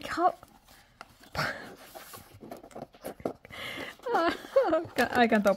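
A paper box rustles and scrapes as it is handled.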